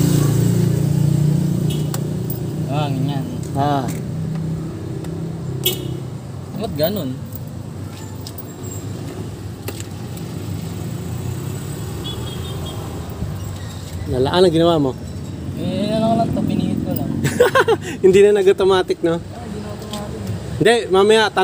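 A scooter's storage compartment clicks and rattles as it is handled.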